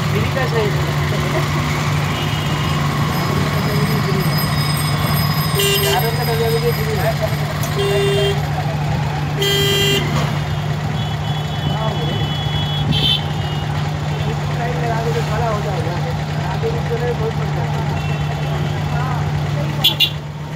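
Auto-rickshaw engines idle in stopped traffic.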